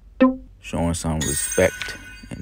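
Cards flick quickly as they are dealt.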